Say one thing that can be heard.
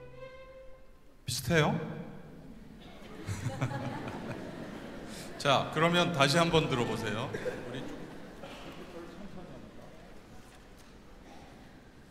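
An orchestra plays loudly in a large, echoing concert hall, with strings and brass swelling in bursts.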